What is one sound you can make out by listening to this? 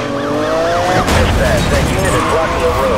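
A car crashes into another car with a loud bang.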